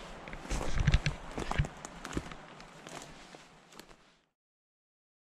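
Footsteps crunch on dry twigs and needles.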